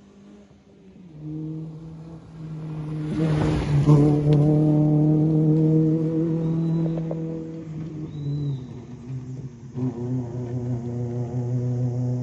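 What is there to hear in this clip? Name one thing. A rally car engine roars loudly as the car speeds past on a gravel road.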